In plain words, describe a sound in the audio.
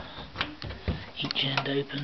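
A hand knocks and taps on a wooden cabinet.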